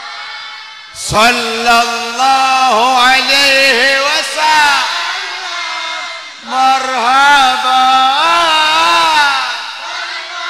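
An elderly man sings loudly through a microphone.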